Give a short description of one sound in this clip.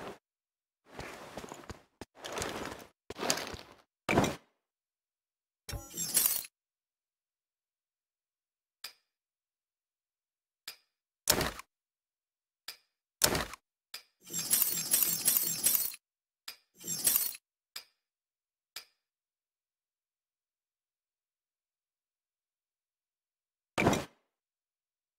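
Gear rattles and clicks in short bursts.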